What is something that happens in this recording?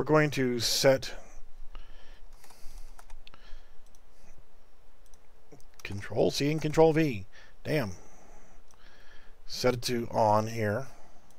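A man talks calmly into a close microphone, pausing between phrases.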